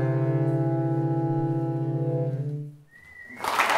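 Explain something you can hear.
A saxophone ensemble holds a final chord that fades out.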